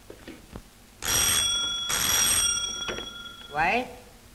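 A telephone rings loudly in two bursts.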